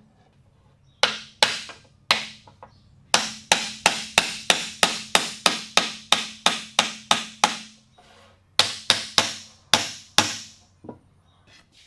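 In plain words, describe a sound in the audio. A hammer taps rapidly on wood.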